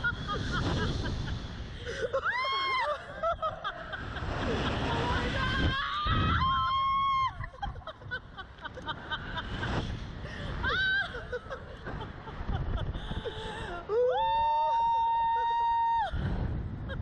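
A woman screams and laughs loudly up close.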